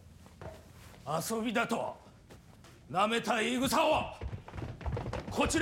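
A middle-aged man speaks tensely and with alarm.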